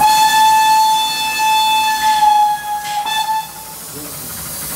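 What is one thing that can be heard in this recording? A steam locomotive whistle sounds loudly and steadily close by.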